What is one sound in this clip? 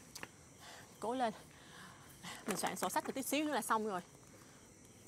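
A young woman sobs and moans close by.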